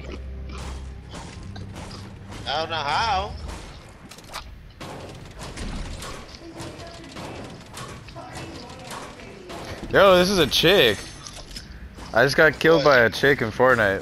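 A pickaxe thuds repeatedly against wood and metal.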